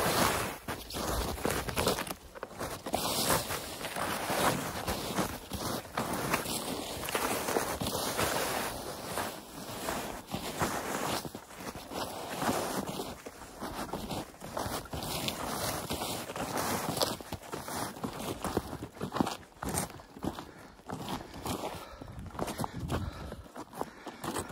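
Wind rushes outdoors.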